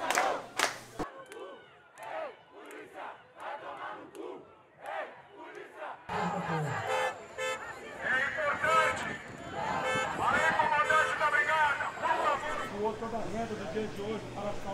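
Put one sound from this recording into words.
A crowd of people shouts outdoors.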